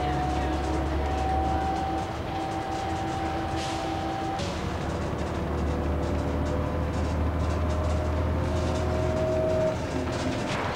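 A bus engine drones steadily from inside the bus.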